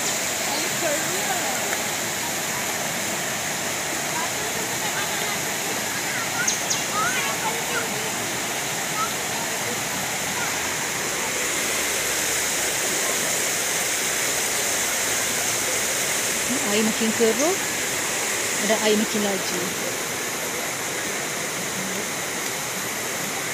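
A swollen river rushes loudly over rocks.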